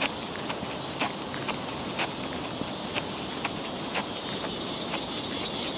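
Footsteps tap steadily on a paved path.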